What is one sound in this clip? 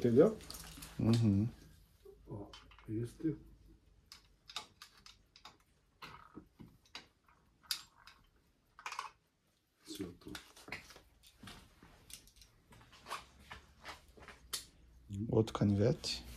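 Metal objects clink and rattle as they are handled.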